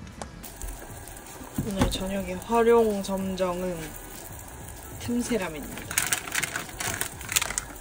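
Water bubbles at a boil in a pot.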